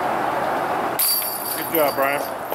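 A disc golf disc crashes into the metal chains of a basket.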